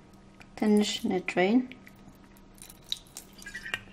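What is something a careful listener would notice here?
Oil trickles into a glass bowl.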